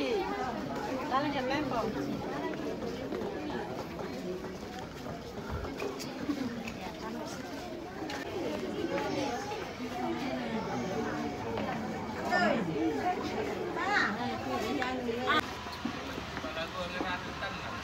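A crowd of men and women chatter close by, all at once.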